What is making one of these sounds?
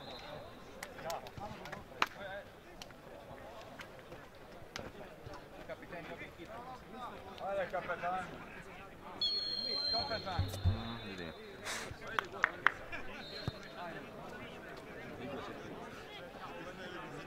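Young men call out and talk at a distance across an open field.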